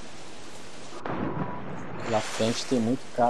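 A body plunges into the sea with a loud splash.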